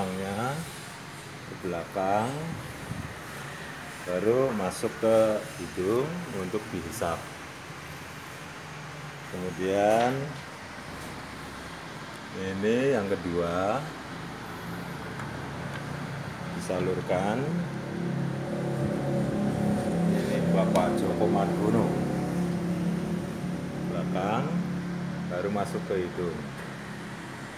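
A man speaks close by, explaining in short bursts.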